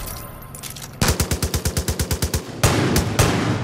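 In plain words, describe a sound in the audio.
A pistol fires a rapid string of shots.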